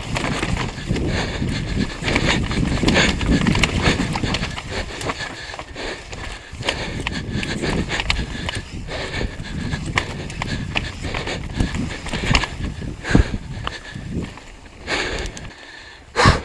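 A bicycle rattles and clanks over bumps.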